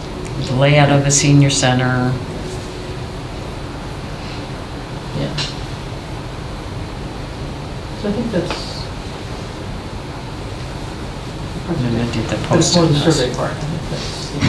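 A man speaks calmly, picked up by a room microphone.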